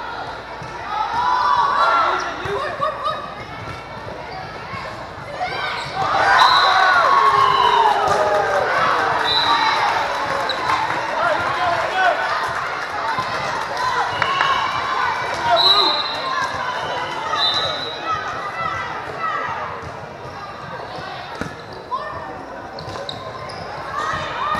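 A volleyball thuds as players hit it.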